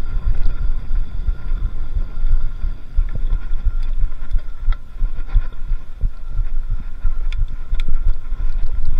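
Wind rumbles loudly across a close microphone.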